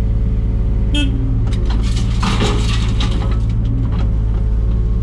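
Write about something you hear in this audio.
Soil and stones tip from a digger bucket into a dumper with a rattling thud.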